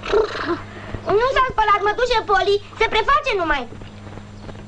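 An elderly woman speaks loudly and sharply.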